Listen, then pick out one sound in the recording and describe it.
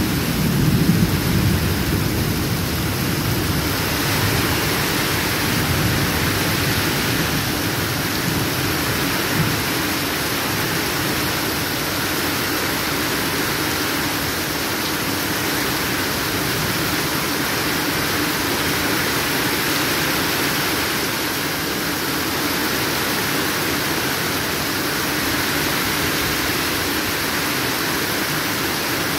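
Rainwater drips and splashes from a roof edge.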